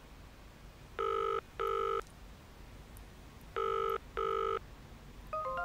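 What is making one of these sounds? A phone's ringing tone beeps faintly through a handset.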